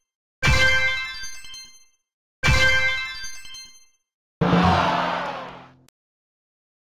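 Bright chimes ring out three times, each fading away.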